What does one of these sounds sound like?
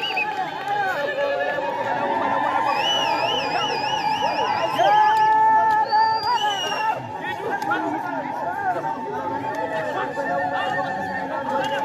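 A large crowd of men and women sings and chants outdoors.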